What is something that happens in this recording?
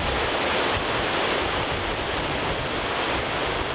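Water rushes steadily over rocks.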